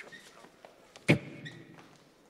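A body thuds heavily onto the floor.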